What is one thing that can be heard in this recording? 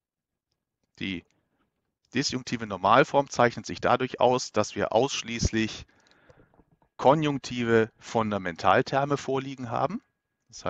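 A man speaks calmly into a close headset microphone.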